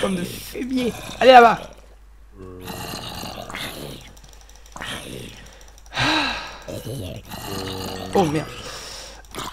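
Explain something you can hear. Zombies groan low and hoarse.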